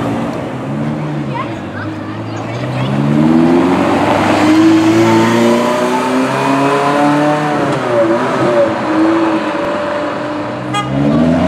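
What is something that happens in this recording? A sports car engine revs loudly and roars past.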